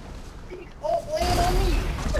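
A plane crashes into the ground with a loud impact.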